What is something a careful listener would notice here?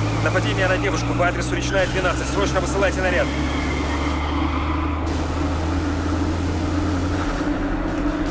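A car engine revs as the car drives off through slush.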